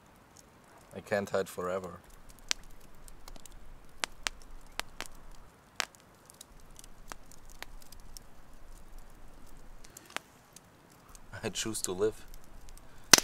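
A man speaks quietly in short bursts.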